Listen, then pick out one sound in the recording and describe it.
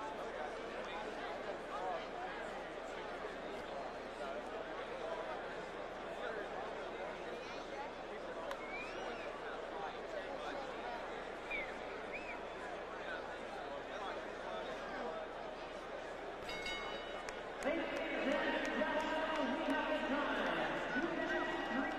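A large crowd murmurs and cheers loudly in an arena.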